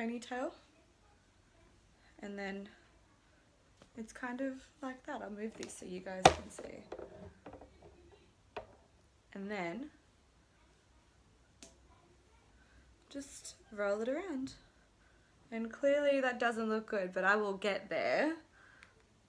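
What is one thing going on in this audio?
A young woman talks calmly and closely into a microphone, pausing between phrases.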